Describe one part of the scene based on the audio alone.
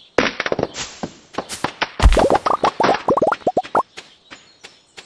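A blade swishes through weeds in rapid bursts.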